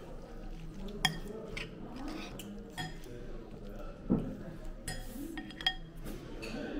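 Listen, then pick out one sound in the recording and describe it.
Metal utensils clink against a ceramic bowl.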